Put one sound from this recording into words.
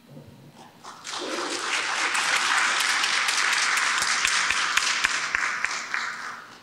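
A congregation applauds in a large hall.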